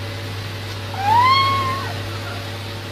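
A kitten meows.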